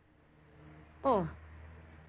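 A young woman lets out a short, falling exclamation close by.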